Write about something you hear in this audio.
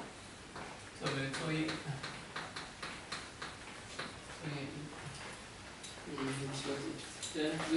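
A man lectures calmly.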